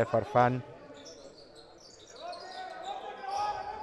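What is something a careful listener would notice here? Sneakers squeak on a court in an echoing hall.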